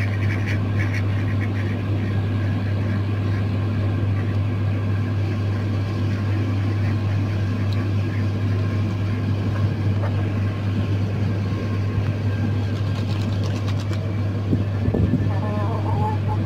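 Chickens and ducks peck at scattered feed on the ground.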